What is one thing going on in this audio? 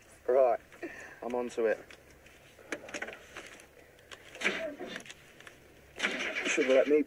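A car engine cranks and sputters as a key is turned.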